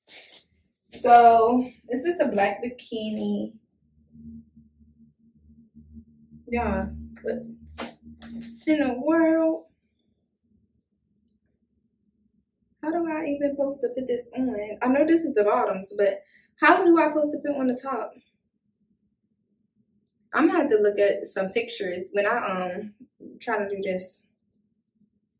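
A young woman talks casually and close by, pausing now and then.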